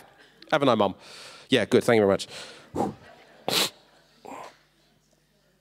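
A man speaks with animation into a microphone, his voice amplified through loudspeakers in an echoing hall.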